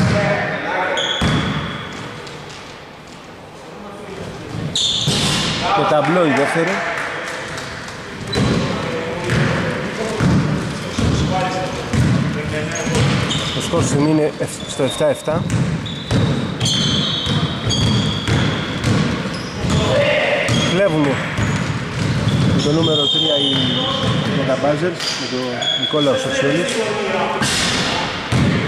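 Sneakers squeak sharply on a wooden court in an echoing gym.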